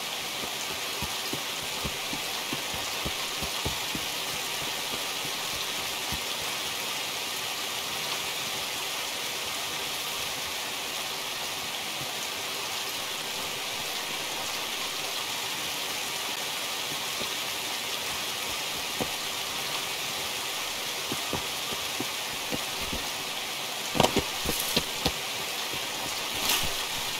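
Footsteps swish steadily through tall grass.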